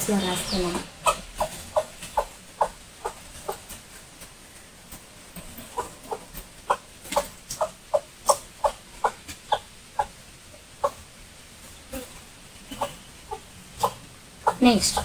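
A duster rubs and taps against a whiteboard in short strokes.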